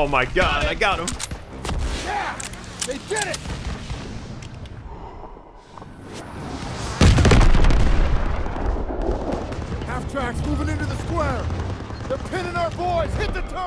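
Battle noise rumbles and booms all around.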